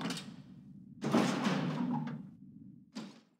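A heavy metal door creaks open.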